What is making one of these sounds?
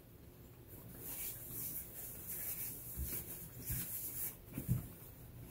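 A paper napkin rustles and crinkles.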